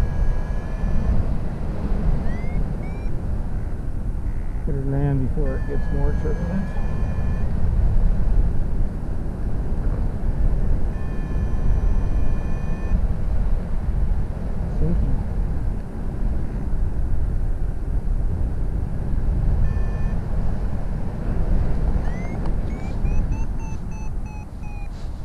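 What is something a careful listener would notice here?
Wind rushes and buffets loudly past the microphone in flight.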